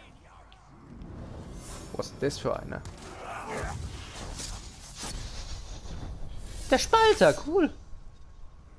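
Blades swish and strike in a fight.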